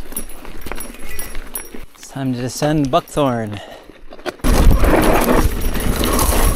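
A mountain bike rattles and clatters over a rough dirt trail.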